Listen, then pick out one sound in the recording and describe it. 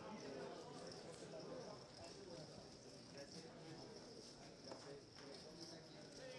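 Poker chips click and clack on a table.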